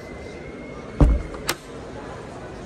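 A hatch lid thumps shut.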